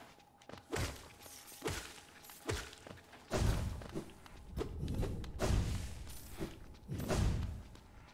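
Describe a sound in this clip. A blade swishes and strikes with sharp, punchy hits.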